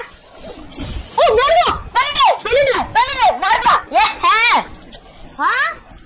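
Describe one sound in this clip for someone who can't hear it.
A boy shouts excitedly into a headset microphone.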